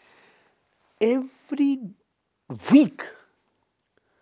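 An elderly man speaks calmly and with emphasis into a close microphone.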